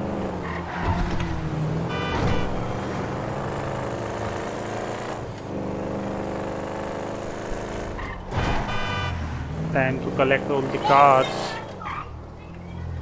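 A car engine revs and roars as the car speeds along.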